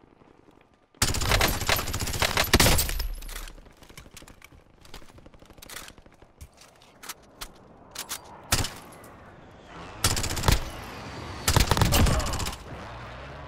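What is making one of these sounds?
Rifle shots fire in rapid, loud bursts.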